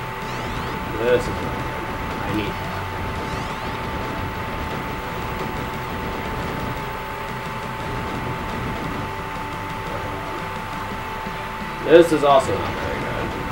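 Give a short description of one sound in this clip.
Electronic explosions burst now and then.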